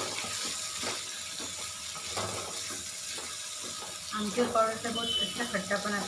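Vegetables sizzle softly in a hot pan.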